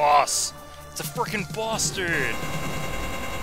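Electronic zaps and chirps sound in quick succession.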